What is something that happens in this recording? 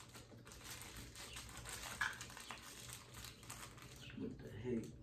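Plastic packaging crinkles and rustles in someone's hands.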